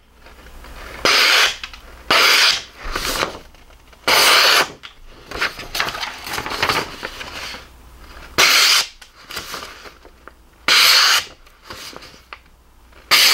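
A sharp knife slices through sheets of paper with a crisp rasping hiss.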